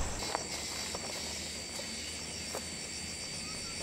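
Footsteps rustle through dense leafy plants.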